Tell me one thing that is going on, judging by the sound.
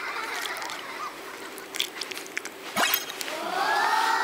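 A young woman crunches on food.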